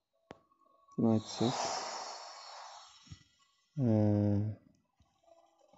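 A magical chime sounds and sweeps downward.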